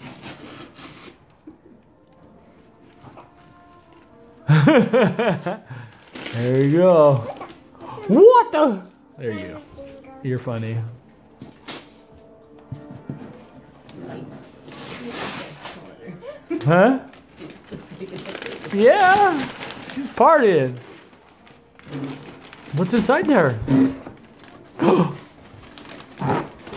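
Cardboard and paper rustle as a box is opened.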